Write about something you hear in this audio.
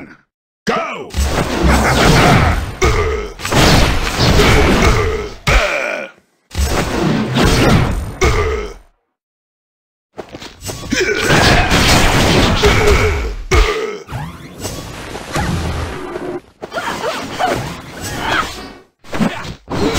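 Punches, kicks and blasts land with sharp thuds and zaps.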